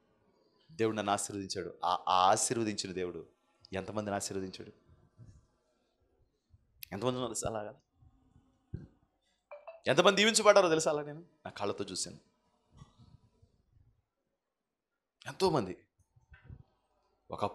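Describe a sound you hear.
A man speaks with animation into a microphone, with pauses between phrases.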